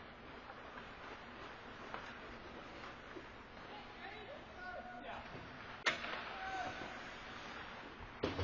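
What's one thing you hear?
Skate blades scrape and hiss across the ice in a large echoing rink.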